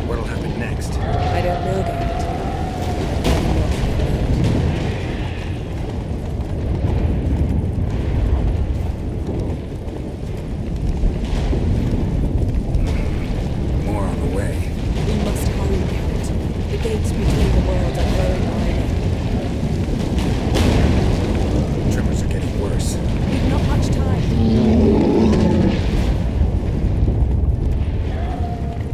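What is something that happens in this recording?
Horse hooves pound steadily on a dirt path.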